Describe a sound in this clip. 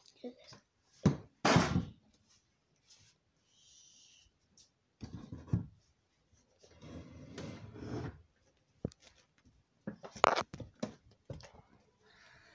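Sharp knocks of handling bump close by.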